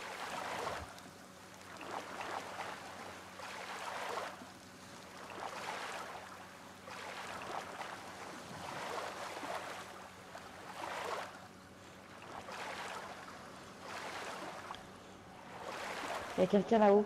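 Grass rustles in steady bursts as someone crawls through it.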